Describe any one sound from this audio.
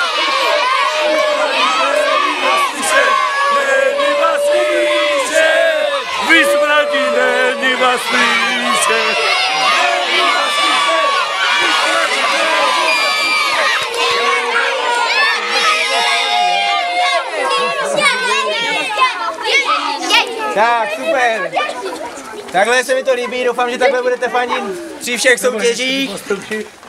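A group of young men and women chant and shout loudly together outdoors.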